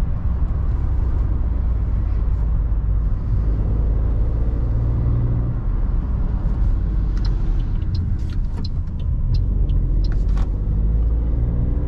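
Tyres roll over the road with a low rumble.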